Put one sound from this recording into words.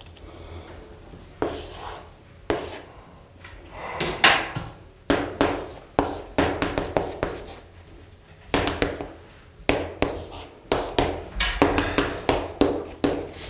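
Chalk taps and scrapes against a blackboard.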